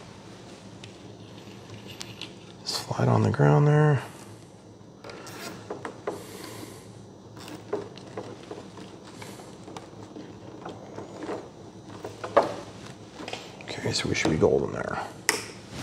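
Small plastic connectors click softly as they are handled.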